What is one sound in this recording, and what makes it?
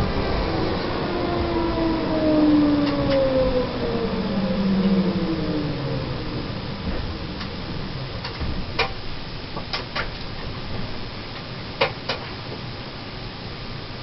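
Tram wheels rumble steadily along the rails.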